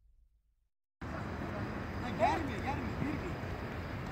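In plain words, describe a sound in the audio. A football is kicked on an artificial turf pitch outdoors.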